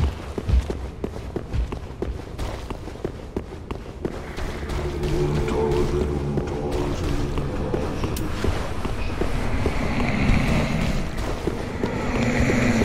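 Footsteps tap on a stone floor, echoing in a large hall.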